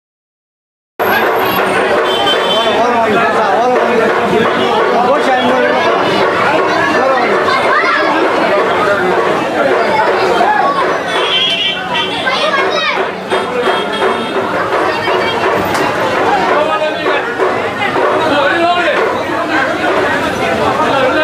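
A crowd of men chants and talks loudly all around, close by.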